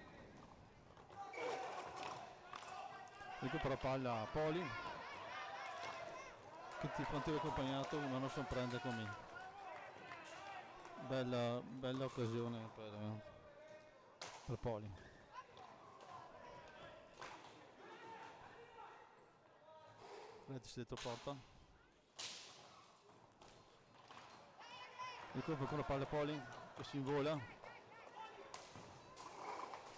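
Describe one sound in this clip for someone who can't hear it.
A stick strikes a ball with a sharp clack.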